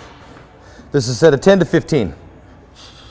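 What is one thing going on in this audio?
A man grunts with effort while pressing a barbell.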